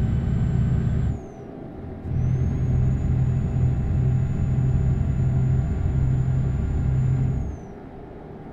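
A truck engine drones low and steady, cutting out briefly and then dropping away near the end.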